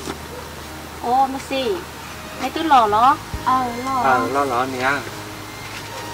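A young woman talks in a lively voice close by.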